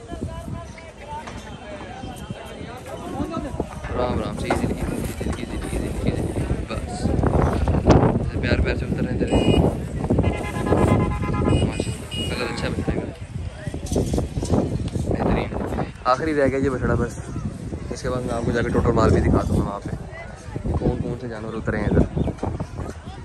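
Men talk and call out outdoors.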